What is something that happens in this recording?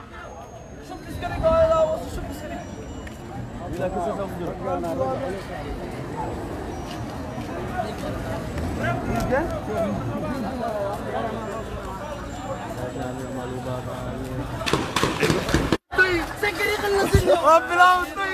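A crowd of men and women shout and talk excitedly outdoors.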